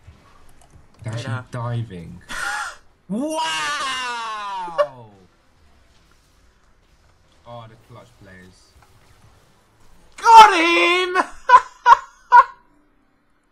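A young man speaks excitedly and exclaims into a close microphone.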